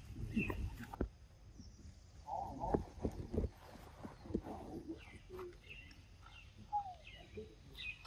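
A monkey gnaws and bites into a mango.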